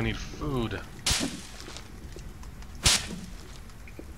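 An axe swishes and chops into a plant.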